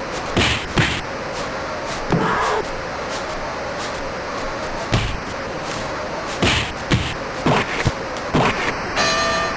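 Punches thud in quick, sharp blows.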